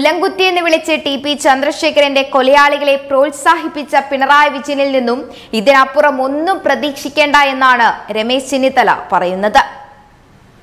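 A young woman speaks clearly and with animation into a microphone.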